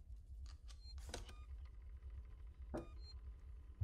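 A button clicks on a phone panel.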